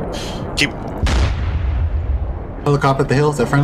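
A tank cannon fires with a heavy boom.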